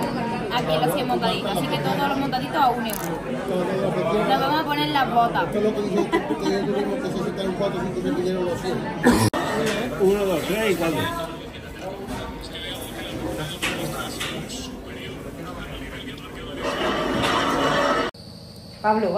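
Many people chatter in a busy, noisy room.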